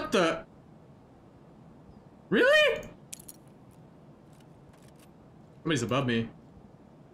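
A young man speaks in short bursts into a close microphone.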